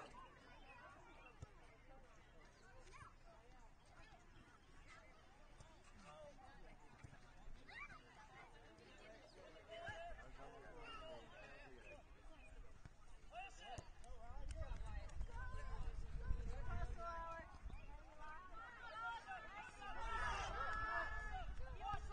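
Men and women talk and call out from the sidelines of an outdoor field.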